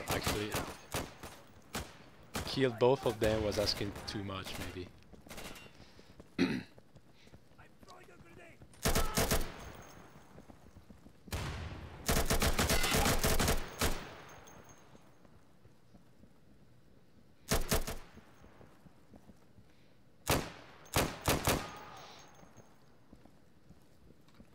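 Boots thud on a hard floor as a soldier runs.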